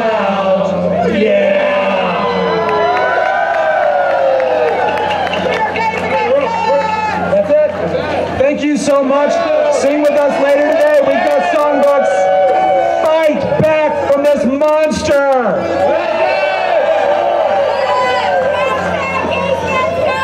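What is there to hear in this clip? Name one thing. A group of men and women sing together through a microphone and loudspeakers outdoors.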